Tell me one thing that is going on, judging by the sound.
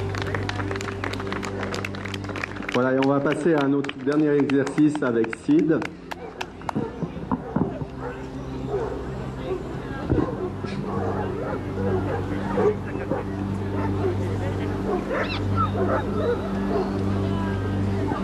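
An outboard motor runs.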